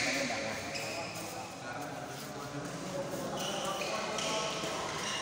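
Sneakers squeak on a hard court floor.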